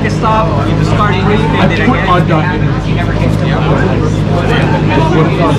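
Playing cards in plastic sleeves rustle and slap softly as they are shuffled.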